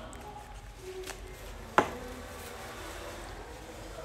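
A wrapper crinkles close by.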